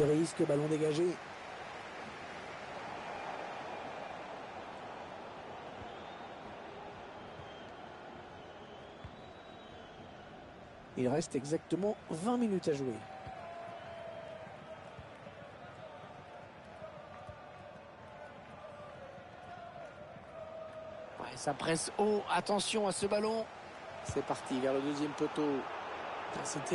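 A large stadium crowd murmurs and cheers steadily in the distance.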